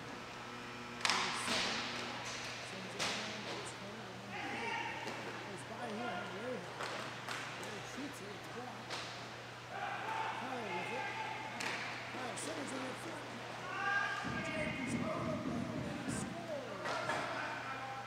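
Hockey sticks clack sharply against a puck in an echoing rink.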